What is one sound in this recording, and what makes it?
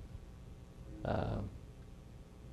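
An older man speaks a brief word into a microphone.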